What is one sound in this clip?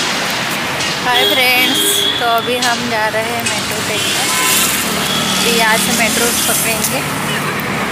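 A young woman speaks close to the microphone.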